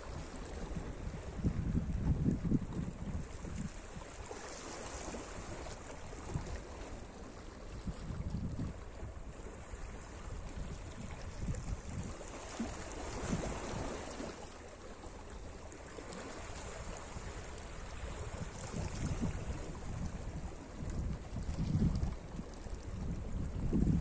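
Small waves lap and wash gently over rocks at the shore.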